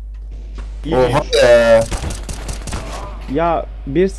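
A rifle fires sharp gunshots.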